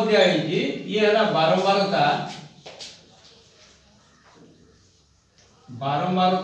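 A man speaks loudly and steadily, explaining.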